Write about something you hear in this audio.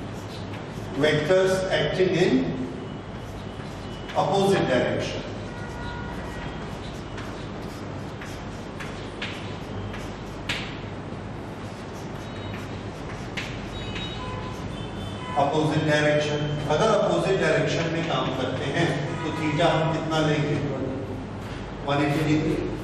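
A man speaks calmly and clearly, close by, in a slightly echoing room.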